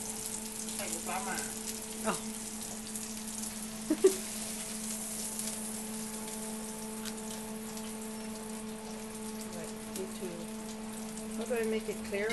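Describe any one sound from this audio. A metal spatula scrapes and clinks against a griddle.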